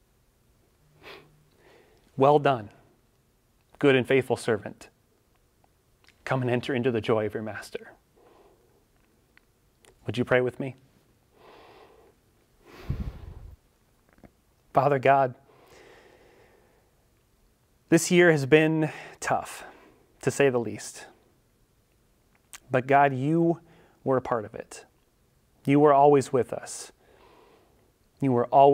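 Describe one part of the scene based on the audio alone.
A young man speaks calmly and clearly into a microphone, with pauses.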